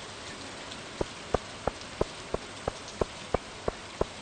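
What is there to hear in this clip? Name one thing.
Footsteps click sharply on a stone path.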